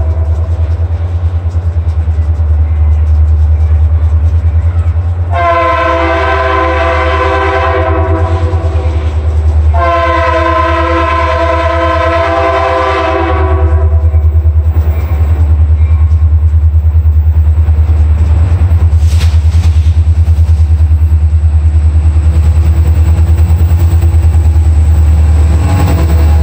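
A diesel locomotive engine rumbles deeply, growing louder as it nears.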